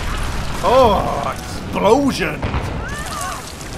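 Explosions boom and crash.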